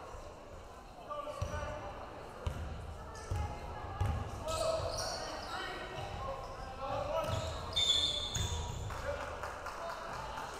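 A crowd murmurs and chatters in the stands.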